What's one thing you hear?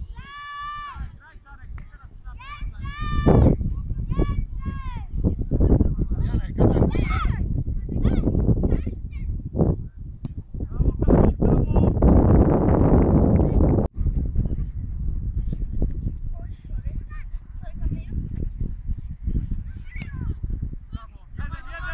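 Young children shout and call out across an open field.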